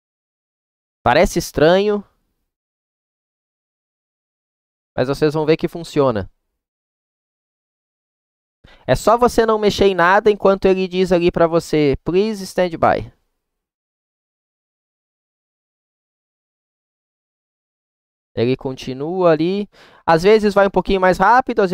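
A man speaks calmly into a close headset microphone, in short bursts with pauses.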